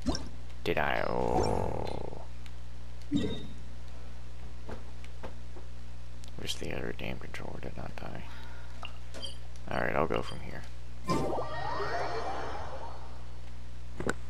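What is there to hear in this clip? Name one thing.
Soft electronic whooshes and chimes play as game menus open and close.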